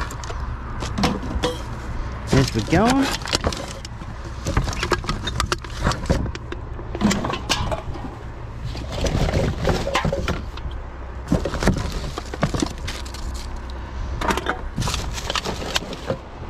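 Cans and bottles clink and rattle as they are sorted by hand.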